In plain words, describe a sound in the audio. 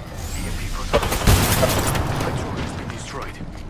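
A crackling energy blast bursts close by.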